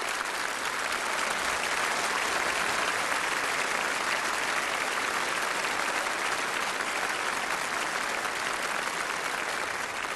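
A large audience applauds loudly and steadily.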